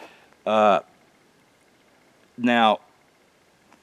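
An elderly man speaks two short words close to the microphone.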